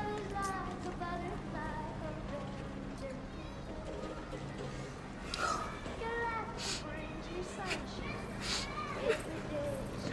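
A young woman speaks emotionally, close by.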